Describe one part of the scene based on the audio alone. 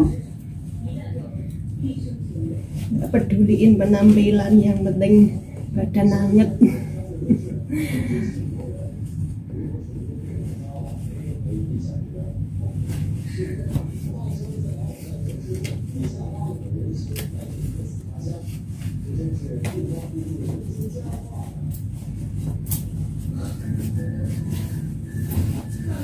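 Clothing rustles as a woman adjusts her jacket.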